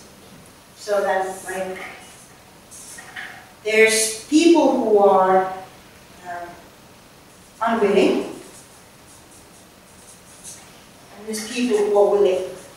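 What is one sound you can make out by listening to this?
A woman speaks in a presenting manner.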